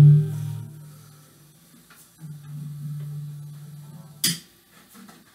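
An electric guitar plays low notes through a small amplifier.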